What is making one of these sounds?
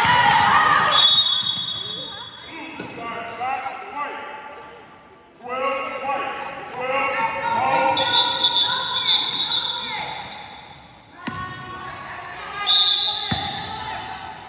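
A referee's whistle blows sharply several times.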